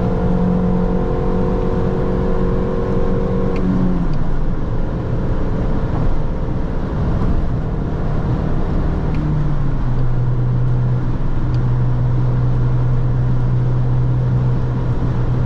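A small car engine drones steadily, dropping in pitch as the gears change.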